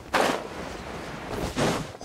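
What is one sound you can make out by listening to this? A blade swings through the air with a whoosh.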